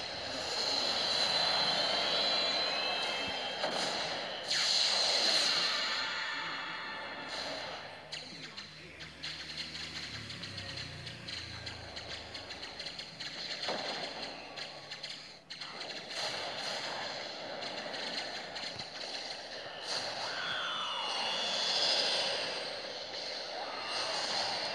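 Laser cannons fire in a space battle game.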